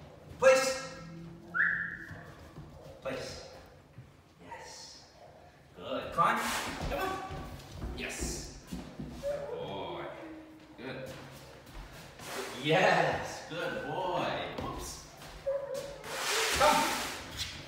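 A man speaks encouragingly to a puppy.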